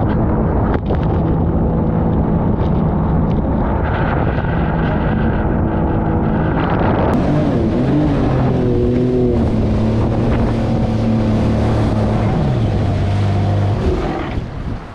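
A boat engine roars loudly as the boat speeds along a river.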